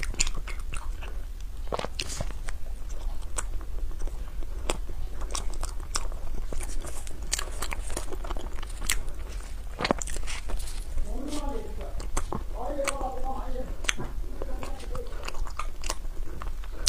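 A young woman chews crunchy food close to a microphone, with crisp crackling bites.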